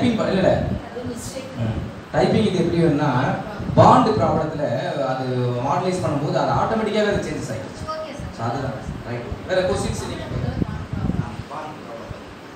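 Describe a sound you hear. A man speaks loudly into a microphone, his voice echoing around a large hall.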